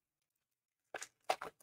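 A foil wrapper crinkles as hands handle it.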